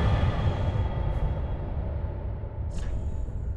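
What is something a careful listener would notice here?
A soft game menu click sounds.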